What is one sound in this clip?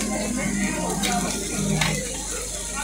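Metal tongs clink against a griddle.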